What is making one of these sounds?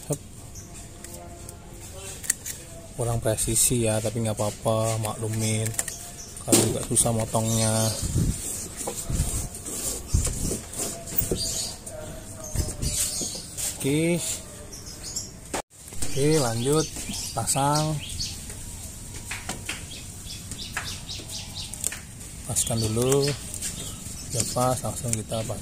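A hand presses and rubs crinkly foil sheeting.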